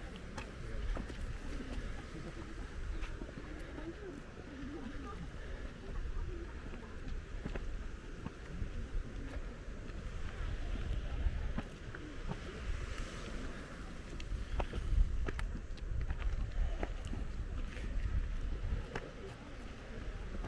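Footsteps crunch on a dry dirt path.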